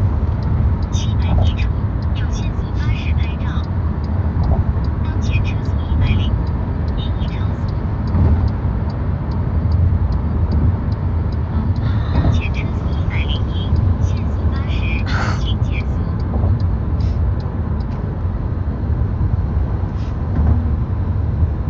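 A young woman speaks softly and close to a phone microphone.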